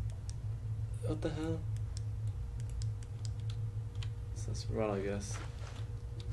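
A young man speaks briefly and quietly into a microphone, close by.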